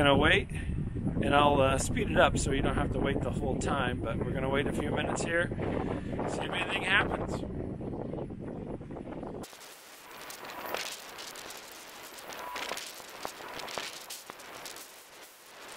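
Wind buffets and crackles outdoors.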